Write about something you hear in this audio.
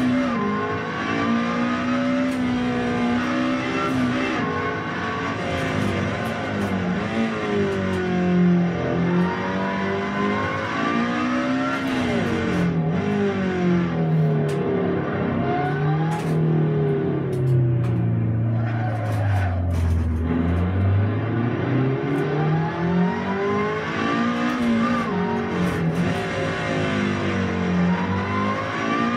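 A racing car engine revs up and down steadily through gear changes, heard through loudspeakers.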